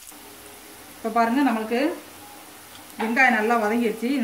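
A metal spoon scrapes and stirs food in a metal pan.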